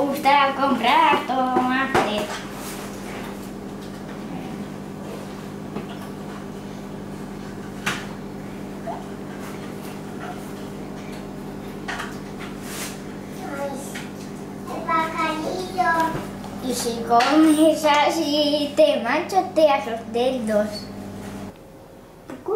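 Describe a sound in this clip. A woman talks gently to a baby nearby.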